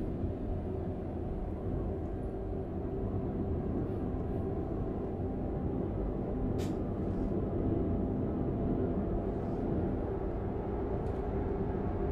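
Tyres roll with a steady rumble on the road.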